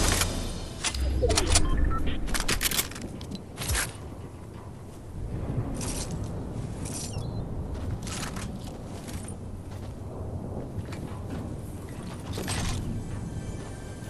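Footsteps clank on metal.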